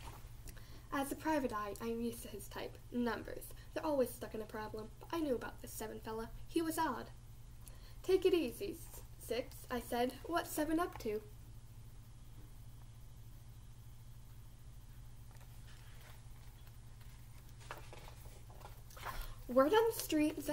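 A girl reads aloud calmly, close by.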